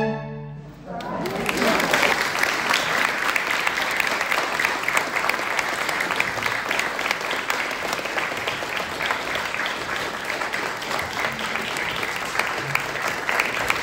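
An audience applauds warmly in a room with a slight echo.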